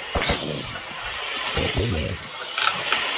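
A zombie groans close by.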